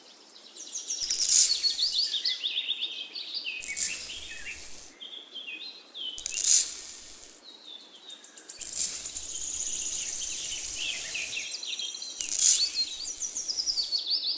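Sand pours in a soft, hissing stream.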